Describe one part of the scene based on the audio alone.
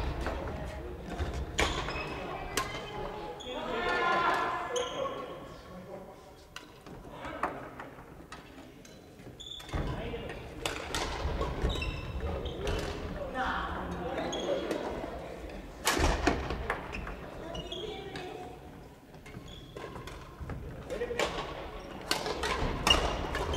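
Shuttlecocks are struck sharply by rackets throughout a large echoing hall.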